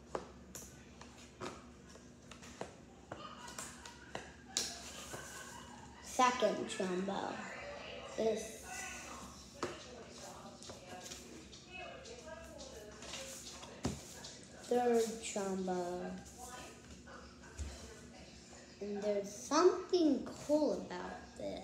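Plastic card packaging crinkles and rustles.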